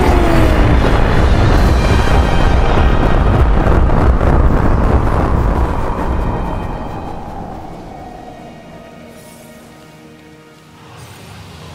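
A huge explosion roars and rumbles, then slowly fades.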